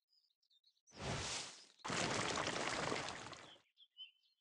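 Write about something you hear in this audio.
A magical shimmering whoosh sweeps through.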